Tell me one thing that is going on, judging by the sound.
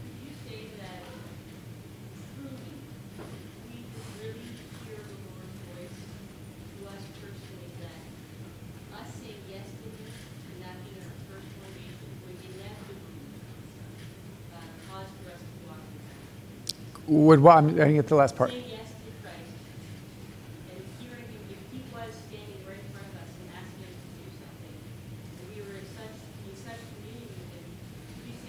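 A man speaks steadily through a microphone and loudspeakers in a large room.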